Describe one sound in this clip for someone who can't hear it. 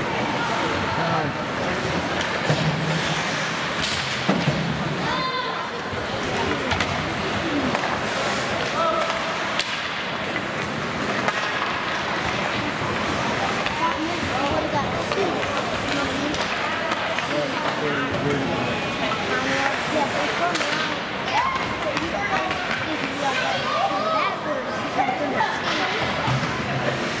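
Spectators in the stands chatter and call out throughout, echoing in a large hall.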